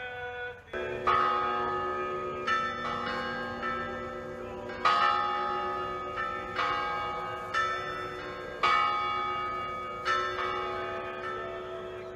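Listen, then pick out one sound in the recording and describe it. Church bells ring out in slow strikes, each tone ringing on.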